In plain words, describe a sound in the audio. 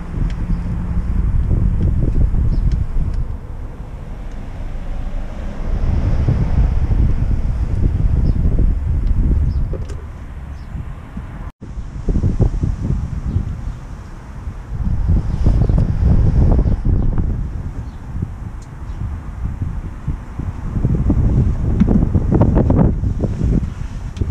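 A wrench clicks and scrapes against a metal bolt.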